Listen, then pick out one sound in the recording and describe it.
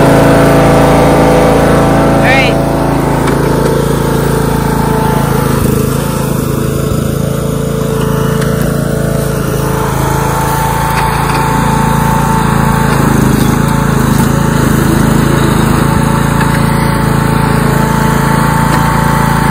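A riding lawn mower engine idles with a steady drone.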